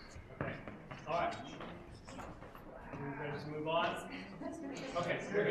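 Men talk nearby in an echoing room.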